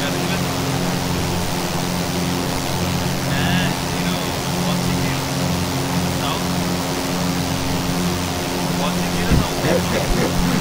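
A light aircraft engine drones steadily.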